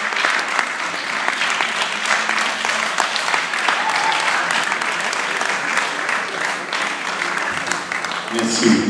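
An audience claps and applauds loudly in a large hall.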